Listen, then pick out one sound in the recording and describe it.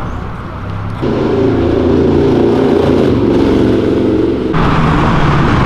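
A motorcycle engine revs as it pulls away.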